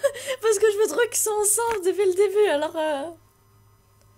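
A young woman squeals and laughs excitedly close to a microphone.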